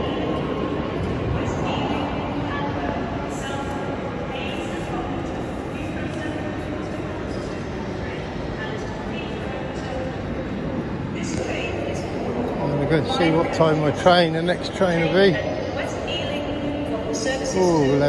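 Distant voices murmur in a large echoing hall.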